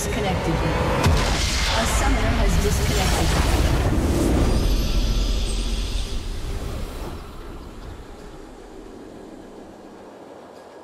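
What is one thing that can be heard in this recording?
A triumphant orchestral fanfare swells and then fades.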